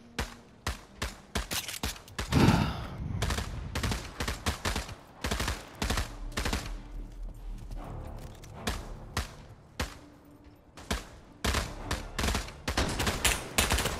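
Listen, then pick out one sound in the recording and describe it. Footsteps thud on hard pavement at a quick pace.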